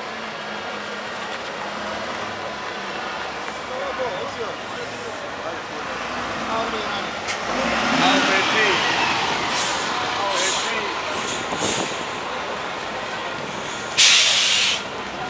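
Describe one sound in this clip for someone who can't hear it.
A motorcycle engine hums as it rides slowly past.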